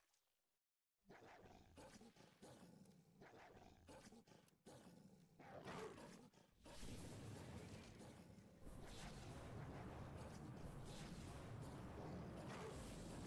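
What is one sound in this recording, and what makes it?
Beasts snarl and clash in a fierce fight.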